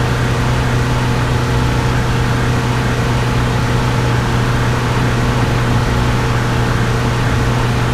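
Tyres roll with a steady road noise.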